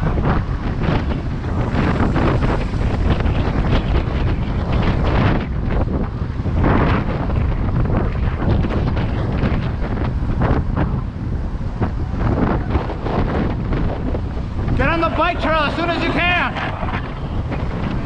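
Bicycle tyres roll over rough pavement.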